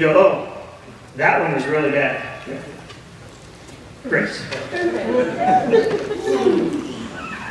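A man speaks with animation through a microphone in a reverberant hall.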